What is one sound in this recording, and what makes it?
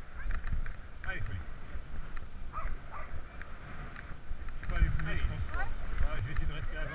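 Dogs whine excitedly while running alongside.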